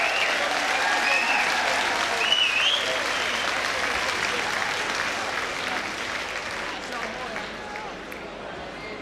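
A large audience applauds and cheers in a big hall, then the applause fades away.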